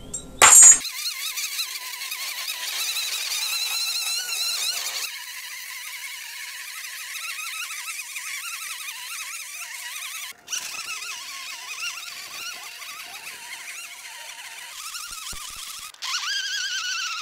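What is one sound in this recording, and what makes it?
A string trimmer engine whines steadily, its pitch wavering up and down as it cuts grass.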